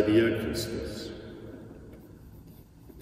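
An elderly man chants aloud in a large echoing hall, the sound dying away in reverberation.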